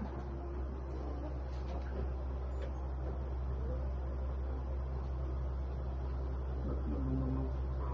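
Guitar strings are plucked softly.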